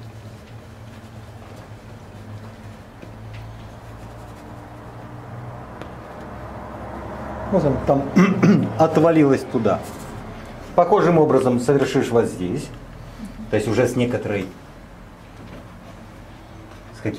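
A paintbrush softly dabs and scrapes across a canvas.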